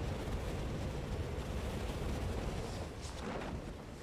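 A parachute snaps open.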